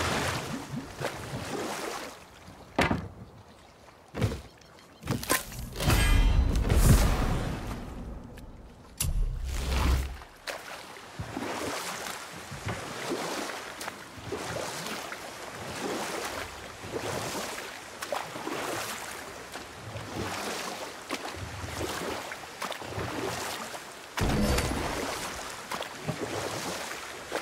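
Water rushes and laps around a moving boat.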